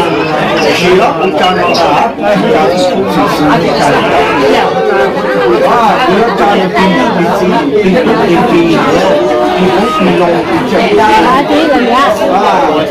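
Several adults talk over one another nearby.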